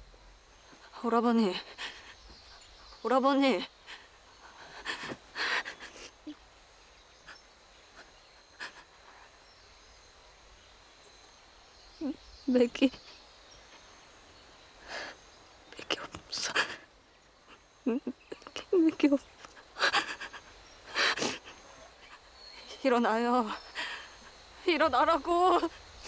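A young woman calls out tearfully and pleads close by.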